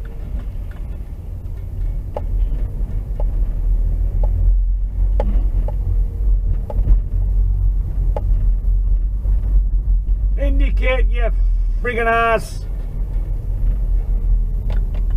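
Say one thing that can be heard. Tyres rumble over the road surface.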